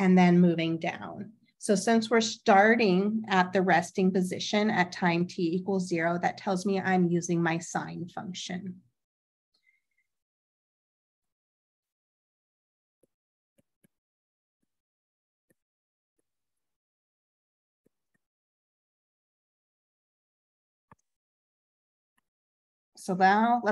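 A young woman speaks calmly into a microphone, explaining.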